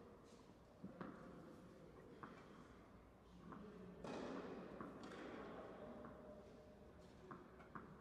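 A tennis ball bounces on a court, again and again at a steady pace.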